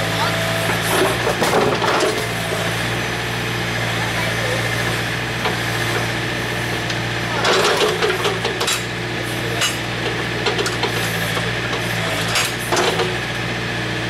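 A digger's metal arm clanks and scrapes as it moves.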